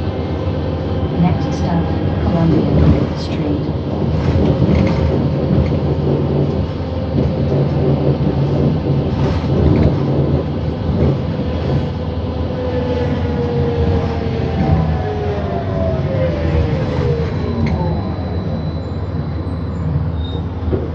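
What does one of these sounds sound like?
A bus engine rumbles steadily from inside the bus as it drives.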